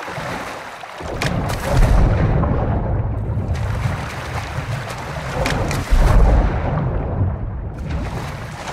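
Bubbles gurgle underwater.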